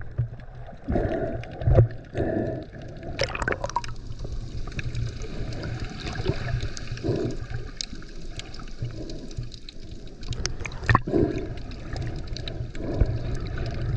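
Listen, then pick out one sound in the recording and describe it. Water swirls and gurgles around the recorder underwater.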